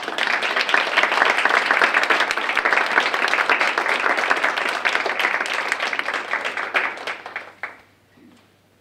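An audience applauds loudly and then falls quiet.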